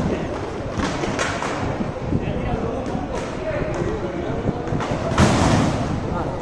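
Inline skate wheels roll and scrape across a hard rink floor.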